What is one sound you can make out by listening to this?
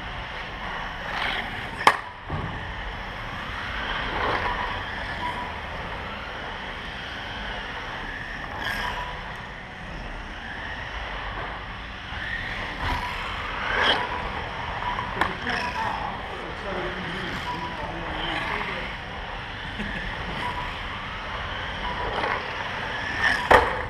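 Small electric model cars whine as they race past in a large echoing hall.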